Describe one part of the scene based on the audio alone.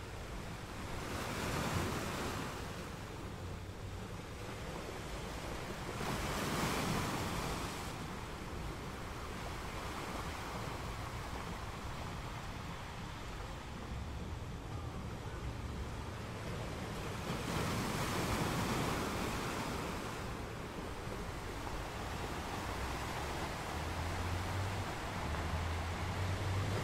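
Foamy water washes and hisses over the rocks.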